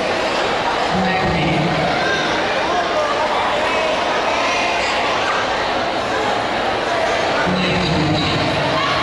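Loud music plays through loudspeakers in a large echoing hall.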